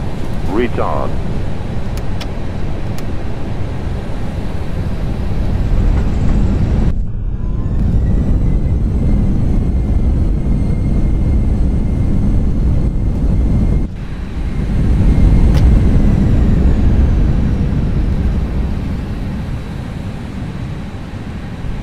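The jet engines of an Airbus A320 roar as it rolls down a runway after landing.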